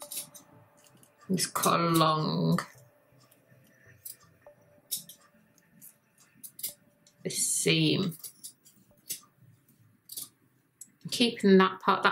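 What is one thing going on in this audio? Scissors snip through fabric in short, crisp cuts.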